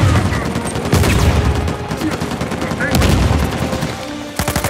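A fireball explodes with a deep, rumbling boom.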